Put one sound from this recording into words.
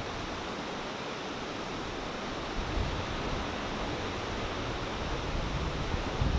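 A large ocean wave breaks and crashes into whitewater.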